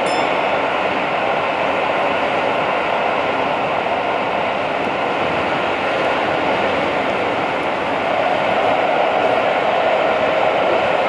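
A train rumbles along the rails with a steady roar.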